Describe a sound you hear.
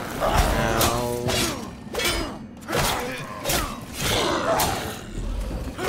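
Metal blades clash and strike with sharp ringing hits.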